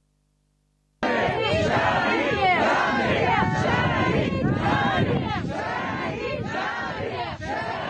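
A crowd of people shouts and chants loudly.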